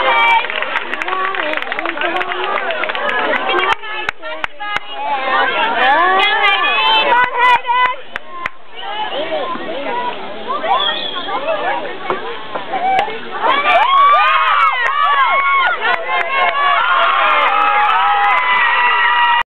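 Young players and spectators shout and cheer outdoors.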